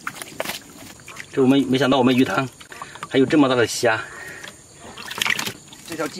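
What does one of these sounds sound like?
Water splashes as hands move through it.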